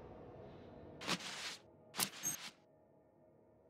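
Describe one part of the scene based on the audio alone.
A coat flaps open with a short rustling whoosh.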